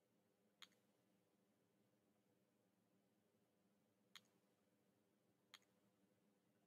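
A computer mouse clicks a few times, close by.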